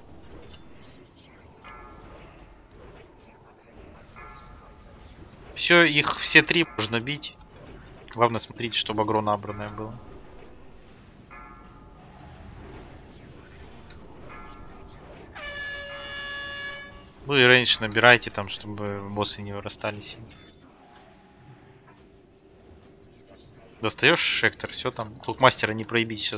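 Magic spells whoosh and crackle amid a battle.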